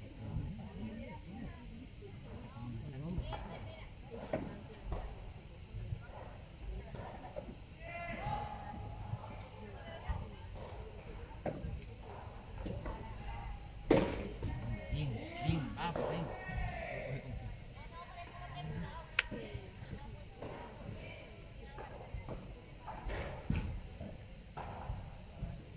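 Padel rackets hit a ball with sharp pops.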